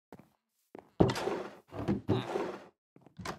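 A wooden barrel creaks open.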